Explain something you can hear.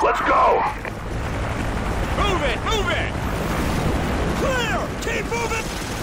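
A heavy tank engine rumbles low and steady.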